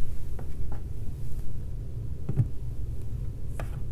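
A phone is set down on a hard surface with a soft knock.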